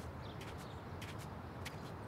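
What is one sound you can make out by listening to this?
Footsteps crunch on snow.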